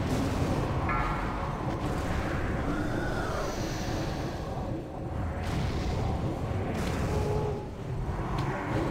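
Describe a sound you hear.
Game spell effects whoosh and clash in a battle.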